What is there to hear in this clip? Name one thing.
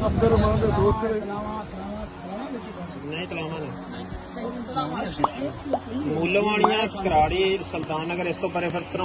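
An elderly man talks to a seated group.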